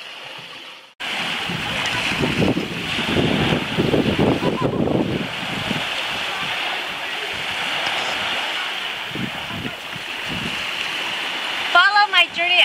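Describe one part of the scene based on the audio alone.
Wind blows hard and rumbles outdoors.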